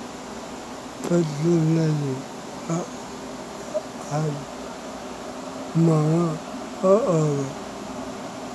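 A young man speaks in short bursts close to the microphone.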